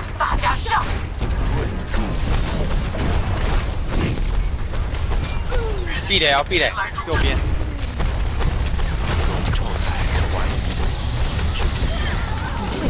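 Gunfire and blasts crackle rapidly in a video game.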